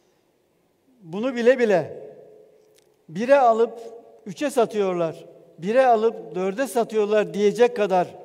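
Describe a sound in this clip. An older man speaks emphatically into a microphone, heard through loudspeakers.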